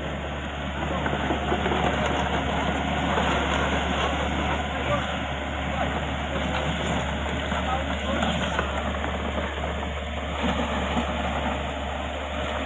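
Steel excavator tracks clatter and squeak as they crawl over mud.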